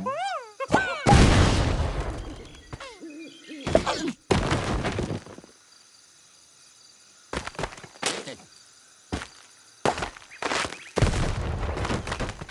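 Game blocks crash and clatter as structures collapse.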